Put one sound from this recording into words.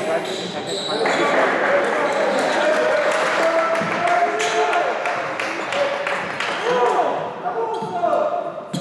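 Young men shout across a large echoing hall.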